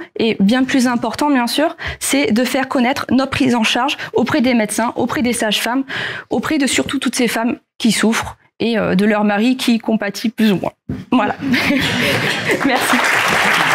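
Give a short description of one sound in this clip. A woman speaks to an audience through a microphone.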